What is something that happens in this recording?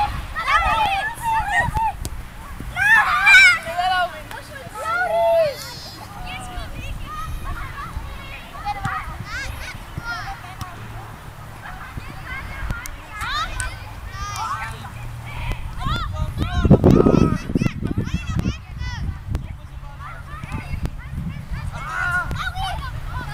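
A football thumps as it is kicked.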